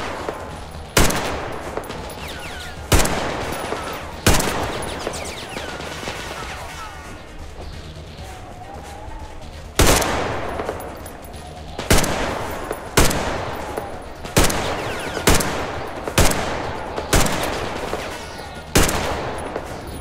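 A rifle fires loud shots one after another, each echoing away.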